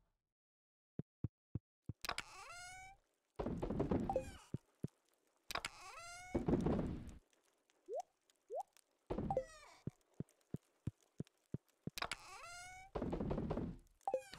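Soft game clicks tick.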